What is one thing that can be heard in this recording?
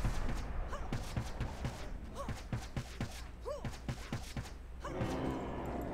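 Heavy blows thud in quick, uneven succession.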